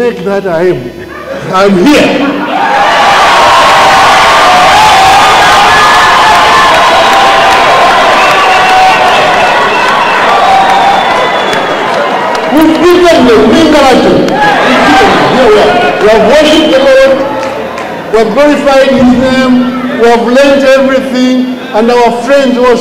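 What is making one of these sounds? A man speaks loudly into a microphone, heard through loudspeakers in a large hall.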